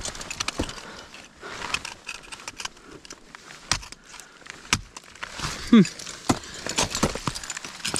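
An ice axe strikes hard ice with sharp, chipping thuds.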